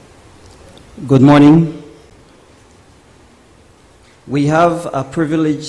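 A man speaks briefly through a microphone in a large room.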